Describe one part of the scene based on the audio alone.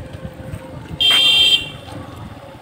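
A bicycle bell rings nearby.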